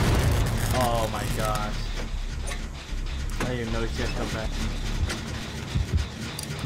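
A machine rattles and clanks under working hands.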